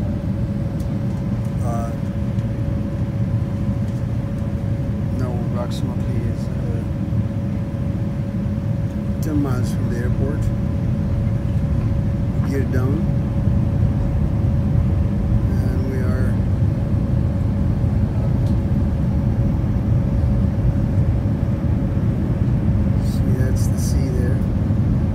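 A jet engine roars steadily, heard from inside an airliner cabin.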